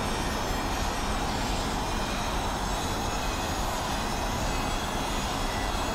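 An electric race car whines at high speed.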